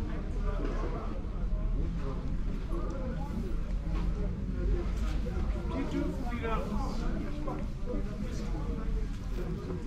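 Women talk calmly nearby in an open outdoor space.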